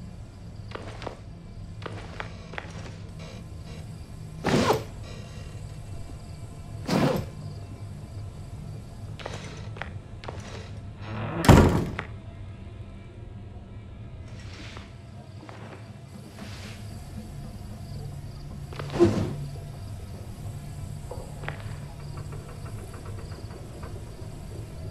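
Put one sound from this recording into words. Footsteps thud softly on a hard floor.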